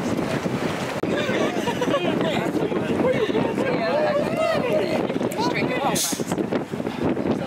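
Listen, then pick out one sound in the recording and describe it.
Young women talk and laugh nearby with animation.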